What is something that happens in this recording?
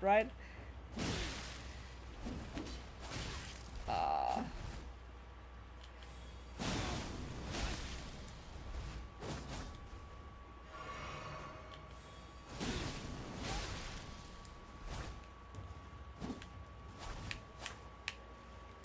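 Blades swoosh and clash in a game fight.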